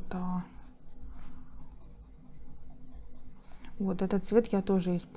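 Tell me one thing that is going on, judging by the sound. An eraser rubs softly against paper.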